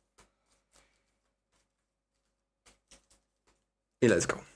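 A foil card pack crinkles softly in someone's hands.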